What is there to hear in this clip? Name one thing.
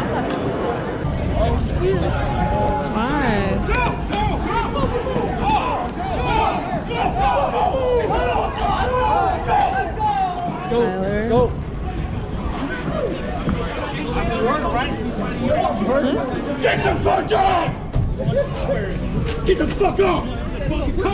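A crowd of young men shout and argue excitedly close by.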